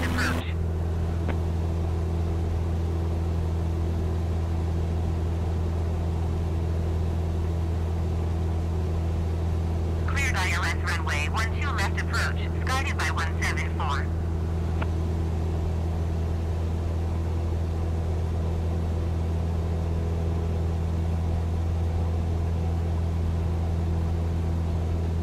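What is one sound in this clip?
A small plane's propeller engine drones steadily from inside the cockpit.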